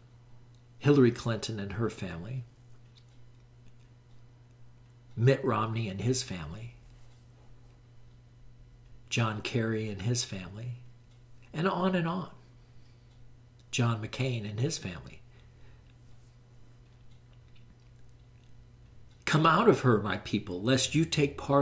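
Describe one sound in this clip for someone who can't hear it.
An elderly man speaks calmly into a nearby microphone, in short phrases with pauses.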